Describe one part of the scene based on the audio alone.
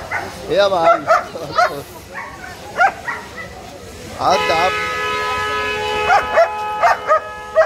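A dog barks sharply nearby.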